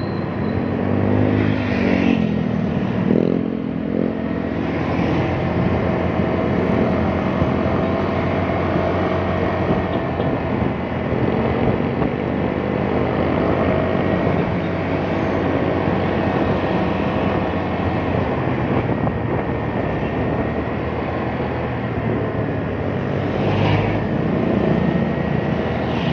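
Other vehicles' engines pass nearby in traffic.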